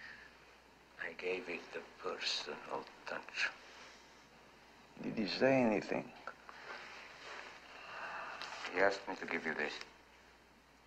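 A young man speaks quietly and respectfully.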